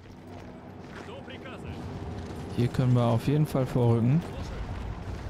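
A young man speaks into a close microphone in a calm, drawn-out voice.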